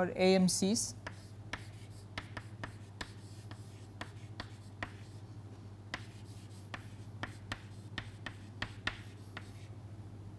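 Chalk taps and scrapes on a chalkboard as a man writes.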